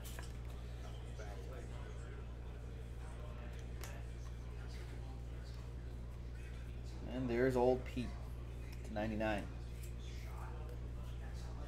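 Cards in plastic cases click and tap in hands.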